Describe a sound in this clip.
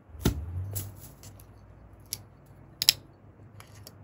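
A bottle cap twists open with a click.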